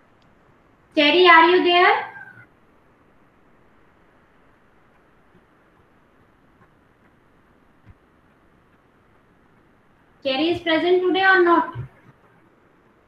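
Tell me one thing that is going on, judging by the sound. A young woman speaks briefly and calmly over an online call.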